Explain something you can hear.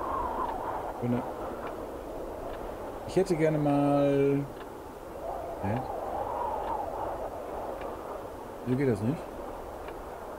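A man speaks and makes vocal sounds close to a microphone.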